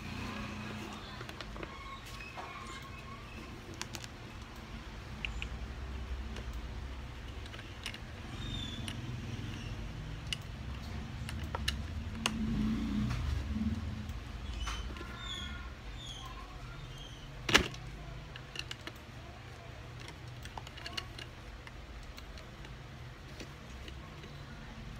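Small plastic bricks click and snap together under hands.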